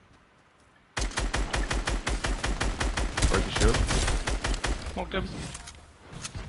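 A rifle fires rapid bursts of shots at close range.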